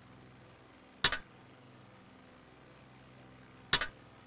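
A short game menu click sounds twice.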